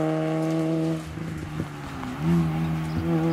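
A rally car's engine drops and picks up again as it shifts gear.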